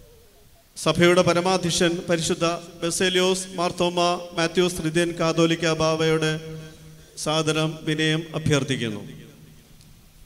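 A middle-aged man speaks firmly into a microphone in a large echoing hall.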